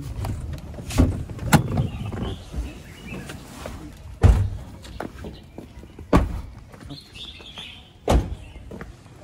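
Car doors thud shut with loud knocks.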